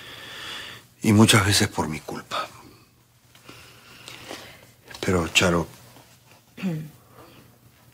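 A middle-aged man speaks calmly and firmly, close by.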